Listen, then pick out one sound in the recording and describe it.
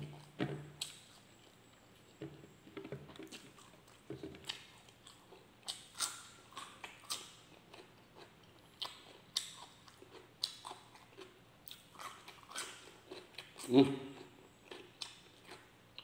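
A man chews and smacks his lips loudly, close up.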